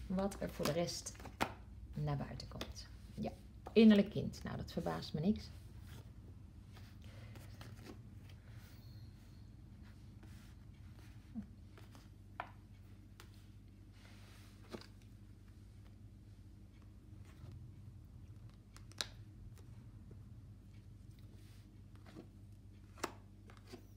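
Playing cards are laid down with soft taps, one by one.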